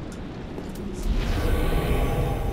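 A weapon crackles and hums as it is charged with magic.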